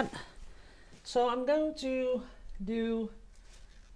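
A paint pot is picked up with a light knock.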